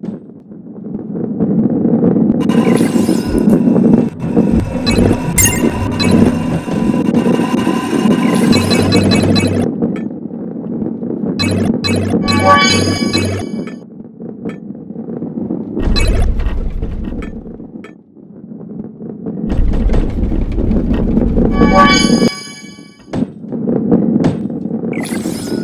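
A ball rolls and rumbles steadily along a wooden track.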